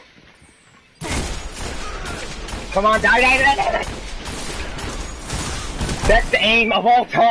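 A gun fires a burst of loud shots.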